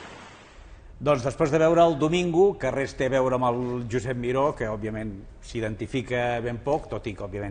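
An older man speaks calmly and clearly into a microphone.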